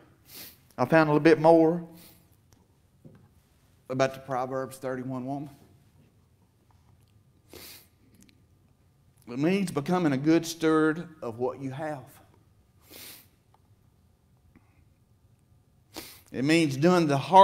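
A middle-aged man speaks deliberately into a microphone, with pauses, in a room with some echo.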